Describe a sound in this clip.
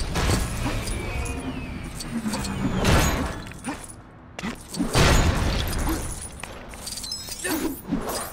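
Small objects clatter and break apart.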